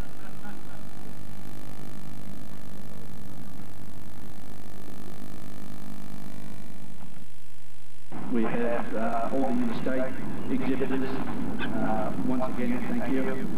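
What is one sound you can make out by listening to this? A middle-aged man speaks firmly into a microphone outdoors.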